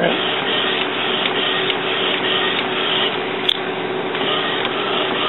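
A printer's carriage whirs rapidly back and forth.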